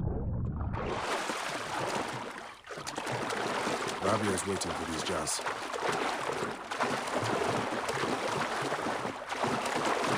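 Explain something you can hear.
Water splashes steadily as a swimmer strokes through waves.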